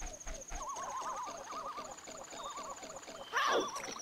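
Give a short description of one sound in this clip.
Water splashes as a game character wades through it.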